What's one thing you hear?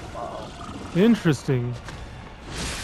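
A huge beast roars and growls.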